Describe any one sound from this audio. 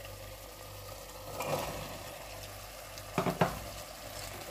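Chickpeas tumble into a metal pot.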